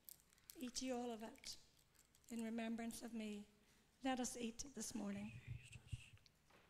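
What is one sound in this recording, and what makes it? An elderly woman sings into a microphone, heard through loudspeakers.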